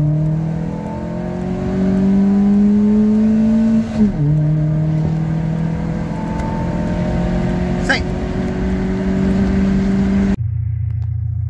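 A car engine roars under acceleration, its pitch climbing and then dropping at a gear change.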